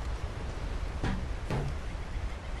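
A wooden crate knocks against wooden planks.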